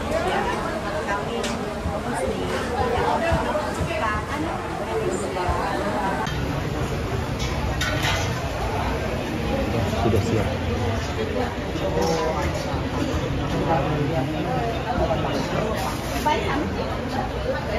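Cutlery and dishes clink on tables.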